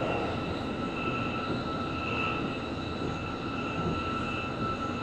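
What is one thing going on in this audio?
A motor whines steadily inside the train cab.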